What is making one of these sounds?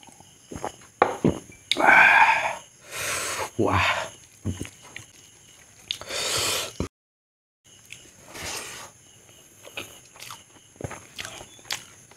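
A man smacks his lips and chews noisily.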